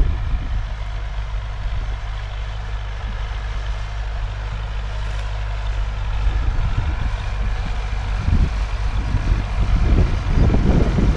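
Wind blows and buffets outdoors, growing stronger toward the end.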